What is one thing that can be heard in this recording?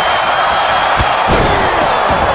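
A body thuds heavily onto a wrestling mat.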